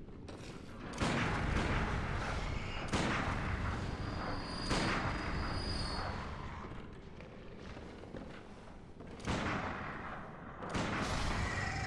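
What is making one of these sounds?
Heavy blade strikes land again and again, each with a loud thud and a ringing tail.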